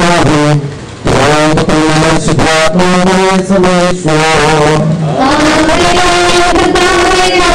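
A crowd of men and women sings a slow, mournful hymn close by.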